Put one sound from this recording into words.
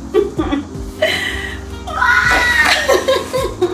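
A young woman laughs and exclaims excitedly.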